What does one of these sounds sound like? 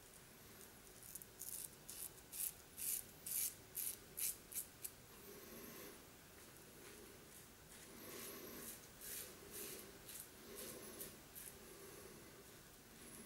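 A razor scrapes rhythmically across stubble.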